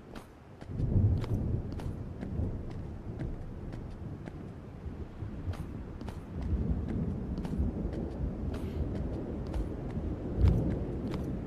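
Footsteps thud and scrape on a hard floor.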